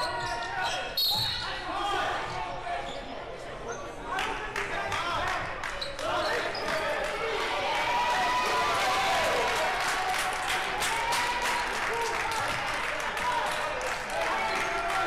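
A crowd of spectators chatters in an echoing hall.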